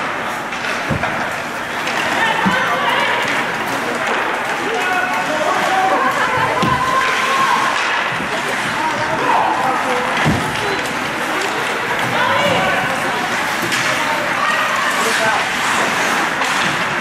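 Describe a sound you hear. Ice skates scrape and carve across the ice in an echoing rink.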